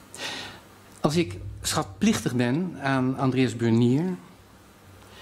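An elderly man reads aloud calmly into a microphone.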